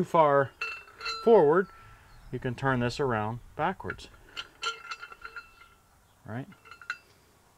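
A man talks to a nearby microphone in a relaxed, explaining way.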